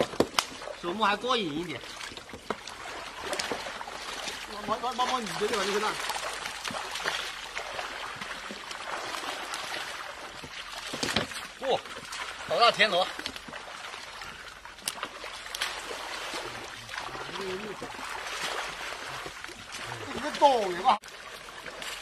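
Men wade and splash through shallow water.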